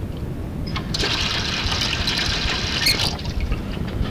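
Water pours from a tap into a pot with a rushing hiss.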